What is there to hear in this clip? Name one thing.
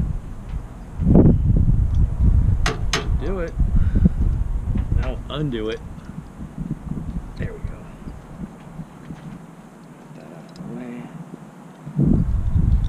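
Wind gusts into the microphone outdoors.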